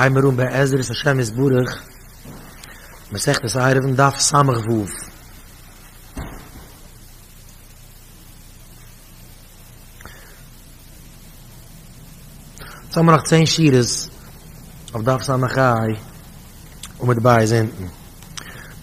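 A man speaks into a microphone in a steady, chanting manner, with pauses.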